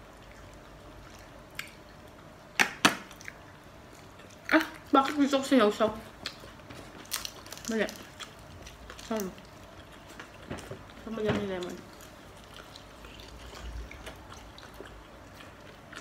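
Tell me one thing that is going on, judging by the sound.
Food is chewed noisily close by.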